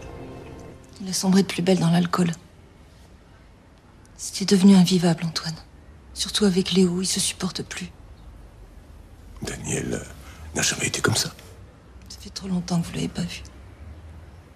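A woman speaks calmly and close by.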